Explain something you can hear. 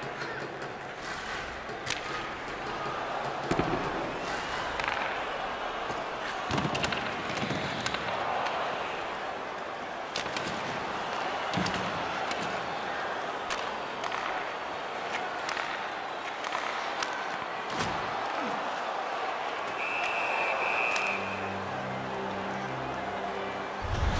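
Skates scrape across ice.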